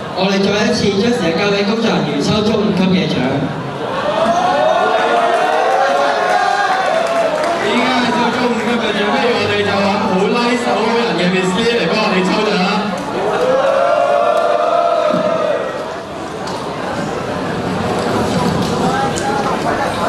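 Two boys speak into microphones over loudspeakers in a large echoing hall.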